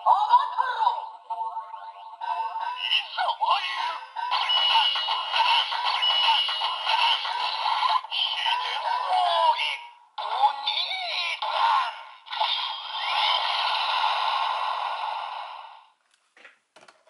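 A toy sword plays loud electronic sound effects and music through a small tinny speaker.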